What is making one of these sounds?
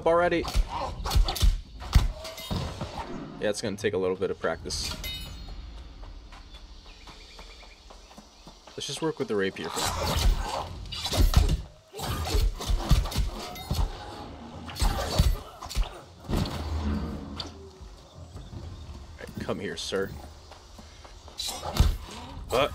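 Sword blows swish and strike with sharp hits.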